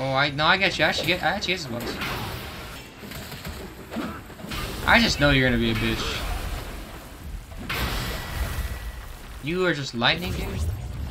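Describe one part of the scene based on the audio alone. A staff strikes a beast with sharp heavy thuds.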